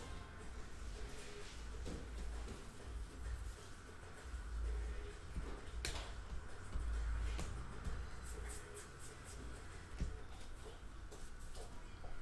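Trading cards rustle and snap as hands shuffle through them.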